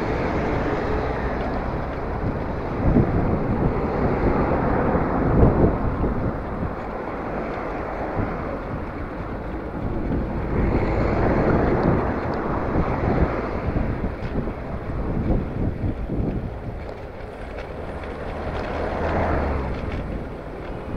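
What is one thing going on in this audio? Cars and a van drive past close by.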